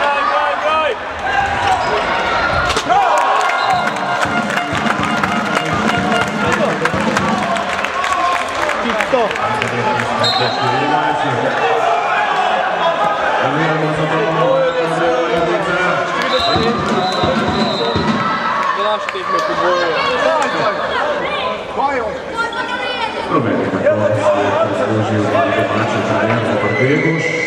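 A crowd chatters and cheers in a large echoing hall.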